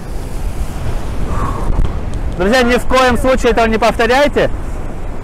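Rough sea waves surge and crash against the shore.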